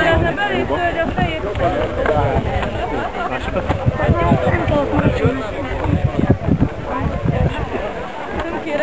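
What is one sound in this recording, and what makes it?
Several men and women talk at once nearby, outdoors.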